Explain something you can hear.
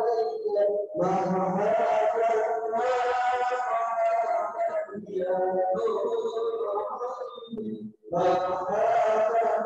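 A man chants in a long, melodic voice through a microphone, echoing in a large hall.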